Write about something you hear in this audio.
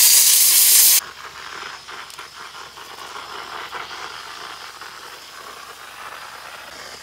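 A spray gun hisses softly and steadily.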